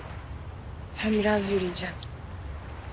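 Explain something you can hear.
A young woman speaks briefly in a tearful voice, close by.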